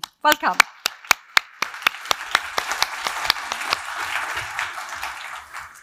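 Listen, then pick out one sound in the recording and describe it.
An audience claps and applauds in a large room.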